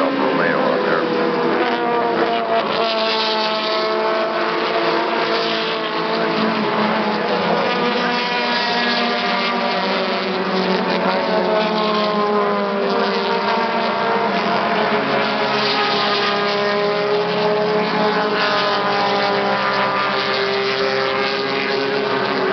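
Racing car engines roar and rev loudly as the cars pass close by, outdoors.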